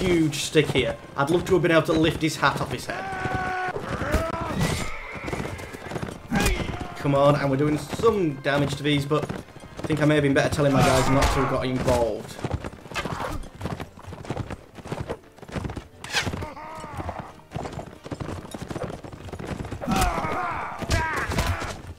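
Horse hooves pound steadily on grassy ground.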